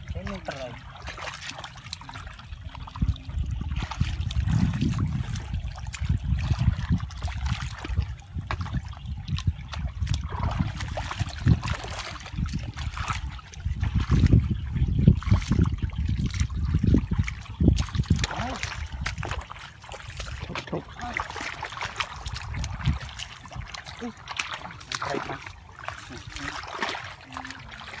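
Hands splash and slosh through shallow muddy water.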